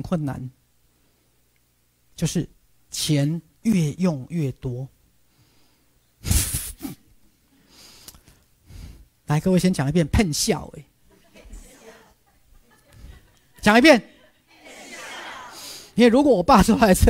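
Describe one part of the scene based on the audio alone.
A man speaks with animation through a clip-on microphone, in bursts with pauses.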